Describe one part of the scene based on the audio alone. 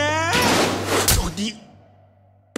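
A man exclaims a short question loudly.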